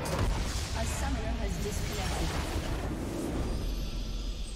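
A booming game explosion crashes and fades away.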